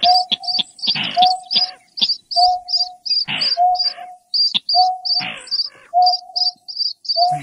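Birds call with rapid, repeated high chirps.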